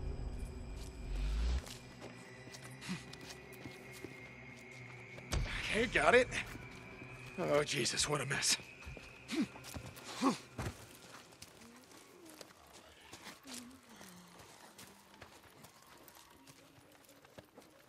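Footsteps tread on dirt and grass.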